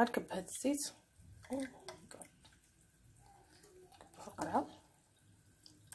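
Liquid pours into a glass jar.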